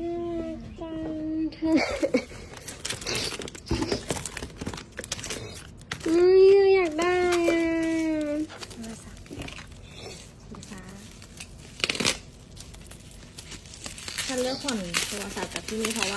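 Plastic wrapping crinkles and rustles as items are handled.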